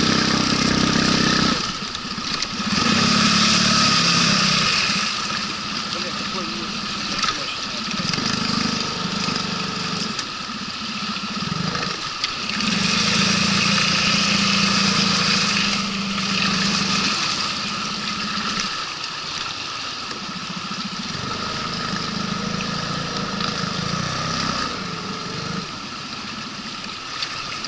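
Water rushes and splashes against a boat hull.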